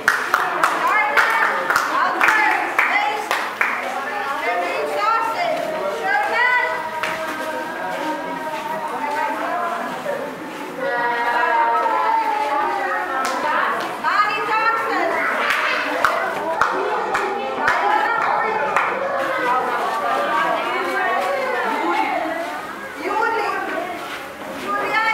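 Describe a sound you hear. Children and adults chatter together nearby.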